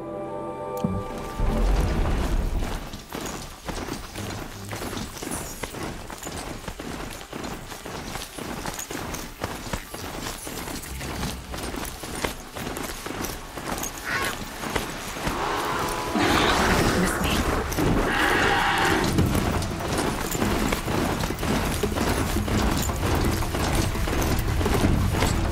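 Heavy mechanical hooves pound the ground at a steady gallop.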